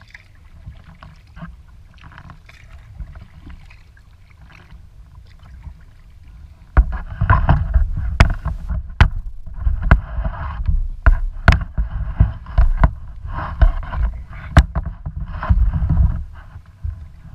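Water laps and splashes against the hull of a moving kayak.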